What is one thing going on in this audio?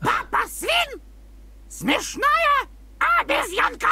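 A cartoon parrot chatters in a high, squawky voice.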